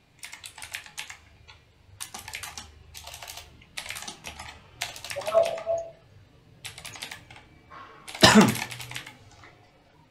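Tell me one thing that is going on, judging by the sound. Keys clatter in quick bursts of typing on a keyboard close by.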